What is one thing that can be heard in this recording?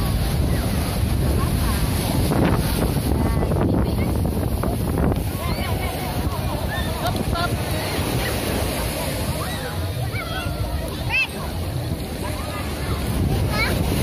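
Waves wash and break onto the shore with a steady roar.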